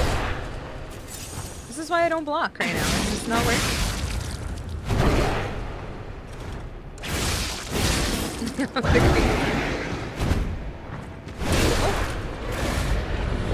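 Heavy blows thud and clang as weapons strike.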